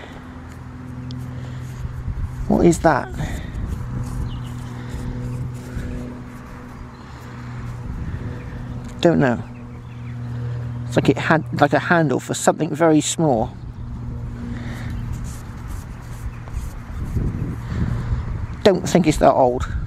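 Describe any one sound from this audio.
Fingers rub and crumble dry soil close by.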